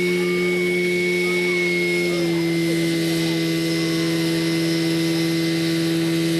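Water jets spray and hiss into the air outdoors.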